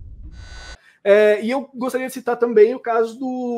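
A young man speaks calmly into a microphone over an online call.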